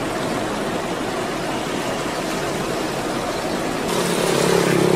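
A car engine hums slowly on a road nearby.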